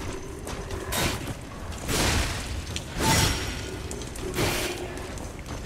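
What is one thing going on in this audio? Heavy blade strikes land with sharp metallic impacts.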